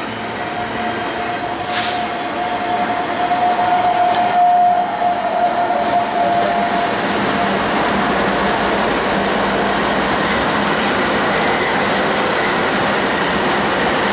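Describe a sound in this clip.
Diesel locomotives roar loudly as they pass.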